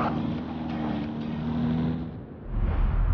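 A race car engine hums steadily.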